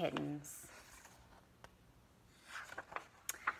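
Pages of a book rustle as they turn.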